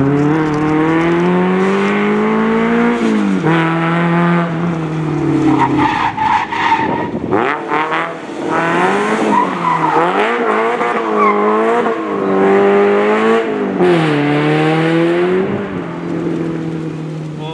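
A car engine revs hard, rising and falling as the car accelerates and brakes.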